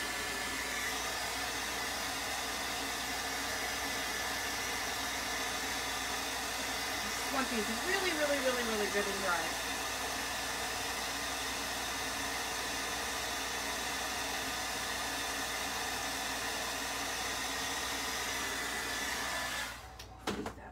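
A heat gun blows with a steady loud whoosh.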